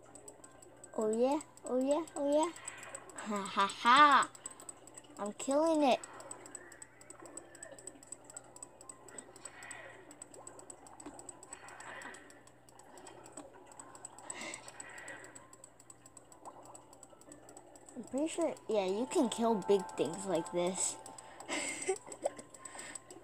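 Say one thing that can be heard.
Cartoonish creature chirps and warbles play through small laptop speakers.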